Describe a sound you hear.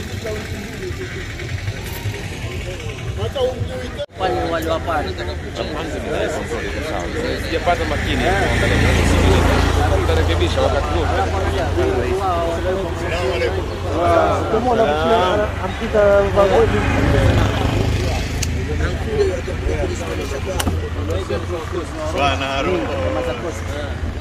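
Several men talk casually outdoors, close by.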